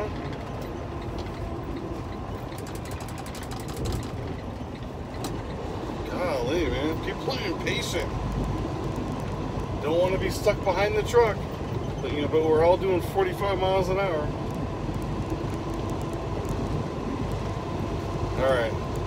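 A truck engine hums steadily inside the cab.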